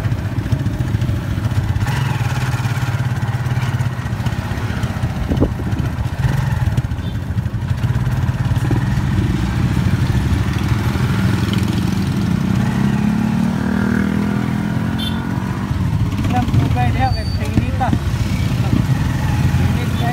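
A small vehicle engine rumbles steadily close by.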